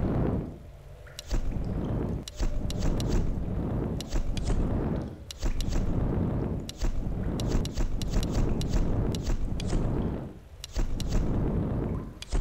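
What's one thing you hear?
Menu clicks tick sharply, one after another.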